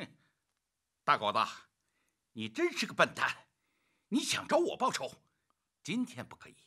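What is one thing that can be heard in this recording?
A middle-aged man speaks mockingly.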